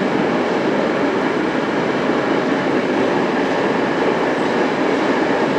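A subway train rumbles loudly along the track.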